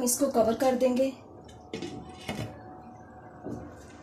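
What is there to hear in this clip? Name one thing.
A glass lid clinks down onto a pan.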